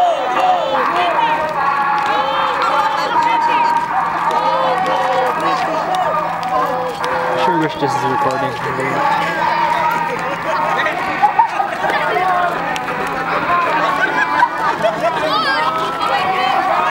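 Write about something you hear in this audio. A crowd of children and adults chatters and calls out.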